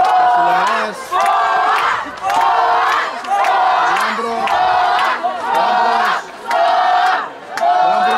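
A crowd of spectators chants loudly in a steady rhythm.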